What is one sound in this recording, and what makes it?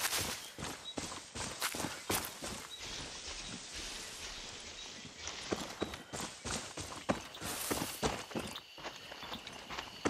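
Footsteps crunch on the ground at a steady walking pace.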